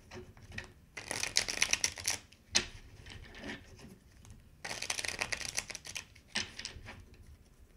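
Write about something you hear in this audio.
Playing cards are shuffled with a quick riffling whir.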